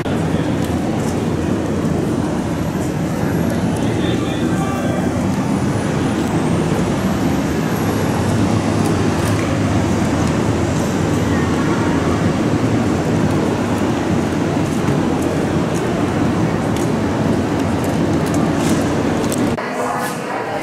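Steady city traffic hums outdoors.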